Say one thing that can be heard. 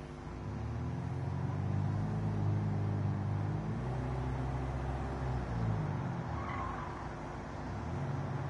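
A car engine revs and roars steadily, rising and falling in pitch as gears change.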